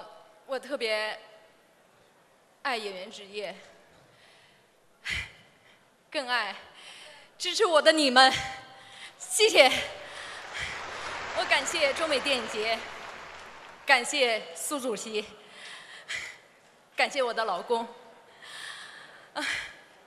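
A young woman speaks into a microphone with emotion, her voice carried over loudspeakers in a large hall.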